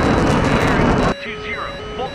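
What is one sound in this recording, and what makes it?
Jet engines roar loudly as aircraft streak past.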